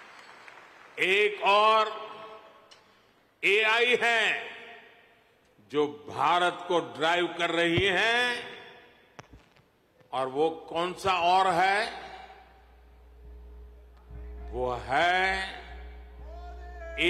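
An elderly man speaks slowly and forcefully into a microphone, with pauses, in a large echoing hall.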